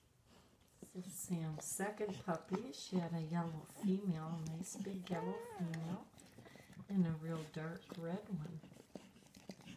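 A newborn puppy squeals and whimpers loudly.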